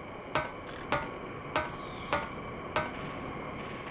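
Hands and boots knock on wooden ladder rungs during a climb.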